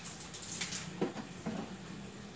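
A plastic watering can is set down on a concrete floor.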